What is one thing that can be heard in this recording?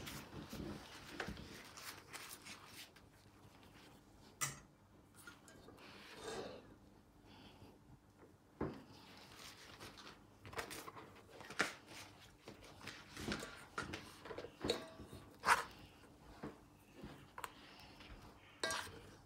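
A spoon scrapes and taps against a pot.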